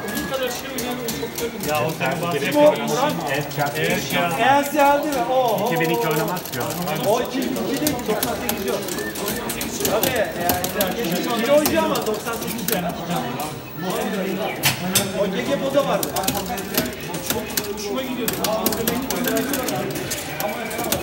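Arcade game music plays through a loudspeaker.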